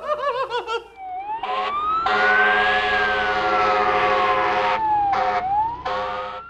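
A siren wails from a distant vehicle, rising and falling slowly.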